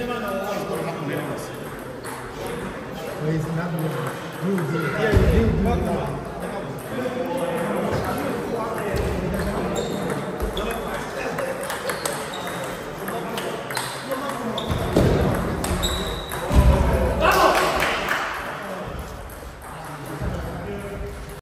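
A table tennis ball clicks back and forth off paddles and a table in an echoing hall.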